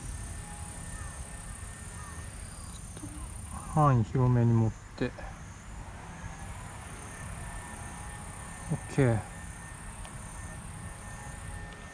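A plastic tube crinkles softly as hands squeeze it.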